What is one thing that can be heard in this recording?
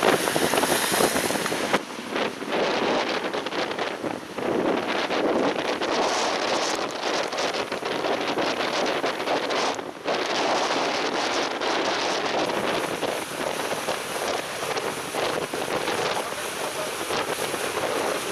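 Strong wind roars and buffets outdoors.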